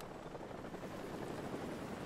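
A helicopter's rotor thuds in the distance.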